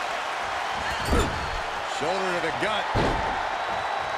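A body slams heavily onto a wrestling mat with a thud.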